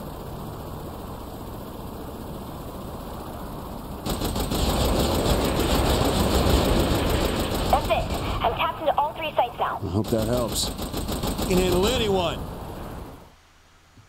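A helicopter's rotor whirs steadily.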